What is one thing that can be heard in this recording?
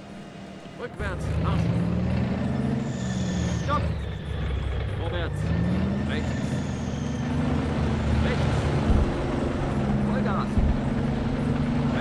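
A tank engine rumbles and whines as the tank drives.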